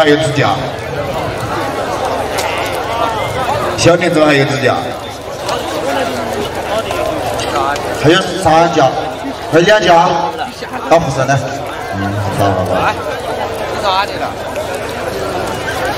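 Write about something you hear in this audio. Water buffalo horns clash and knock together.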